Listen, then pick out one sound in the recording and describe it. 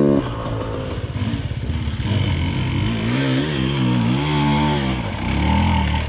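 A dirt bike engine revs and climbs up a slope nearby.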